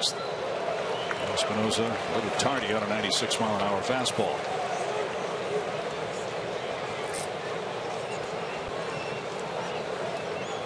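A large stadium crowd murmurs steadily outdoors.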